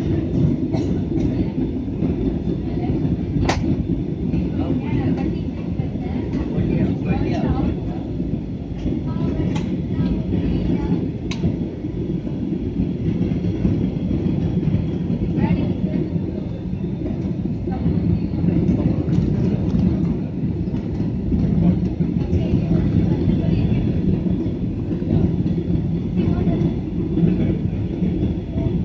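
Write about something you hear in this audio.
A jet airliner's engines roar steadily from inside the cabin.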